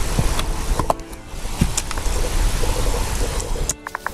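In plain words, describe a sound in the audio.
A pickaxe chips at rock with short crunching knocks.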